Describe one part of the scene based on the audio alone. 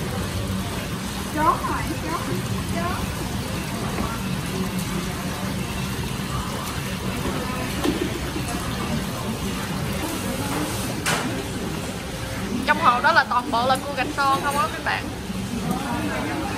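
Metal tongs splash in the water.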